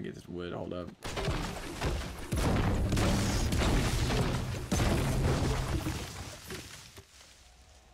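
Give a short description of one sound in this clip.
A pickaxe chops repeatedly into wood.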